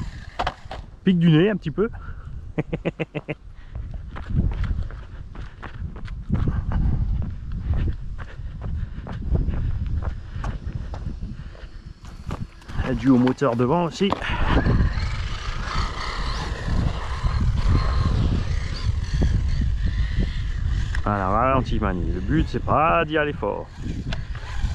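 A small electric motor of a remote-control car whines, revving up and down.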